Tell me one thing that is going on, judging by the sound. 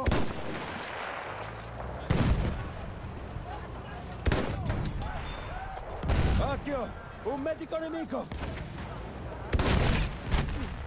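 A bolt-action rifle fires loud shots.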